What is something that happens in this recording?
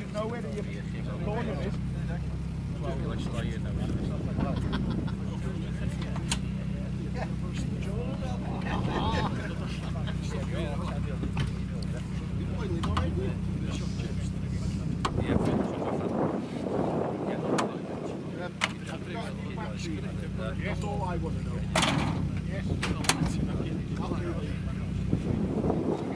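Metal clicks and clanks as men work on a car engine.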